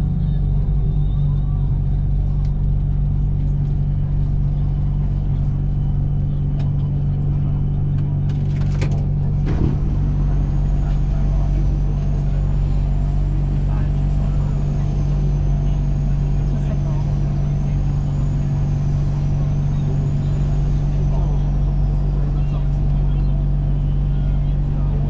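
A train's motor hums steadily as the train slows to a stop.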